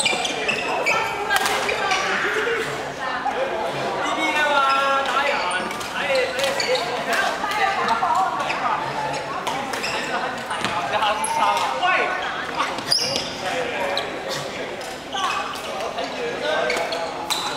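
Shuttlecocks pop off badminton rackets in a large echoing hall.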